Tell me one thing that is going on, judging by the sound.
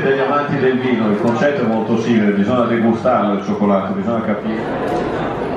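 A man speaks with animation to an audience.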